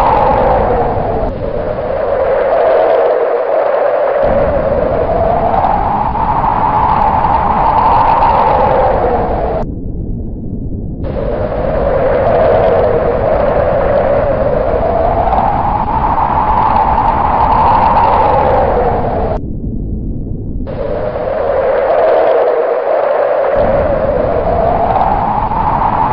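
Strong wind howls and gusts outdoors, swelling and easing.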